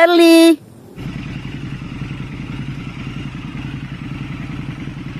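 A motorcycle engine idles with a deep, steady throbbing rumble.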